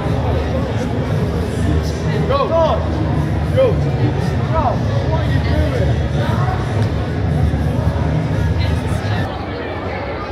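Young men and women talk and laugh close by outdoors.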